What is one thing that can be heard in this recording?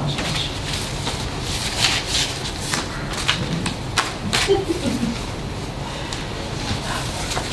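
A man speaks calmly in a small room, heard from across the table.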